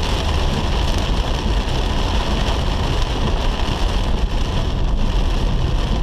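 Windscreen wipers swish across the glass.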